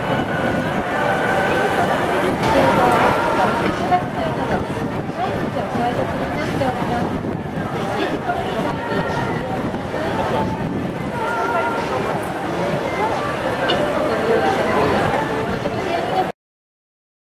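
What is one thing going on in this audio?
A crowd of people chatters in a busy street outdoors.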